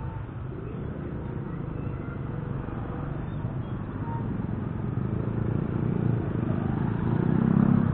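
A tricycle engine idles close by and grows louder.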